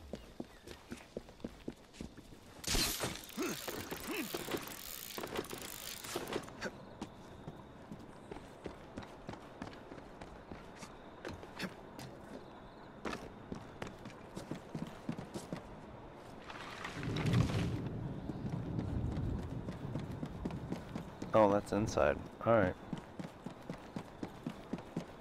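Footsteps patter quickly on hard ground and rooftops.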